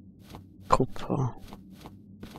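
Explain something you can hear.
Loose rock crumbles and falls.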